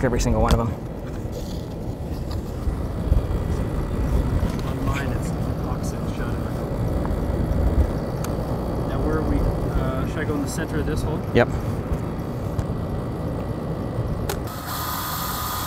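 A man talks casually nearby, outdoors.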